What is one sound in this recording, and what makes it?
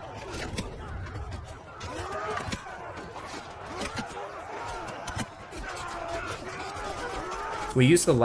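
Swords clash and clang in a crowded battle.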